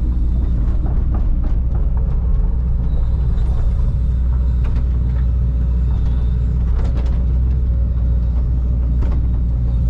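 A diesel engine rumbles steadily close by, heard from inside a cab.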